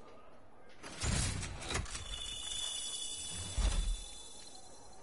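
A game reward effect whooshes and rings out.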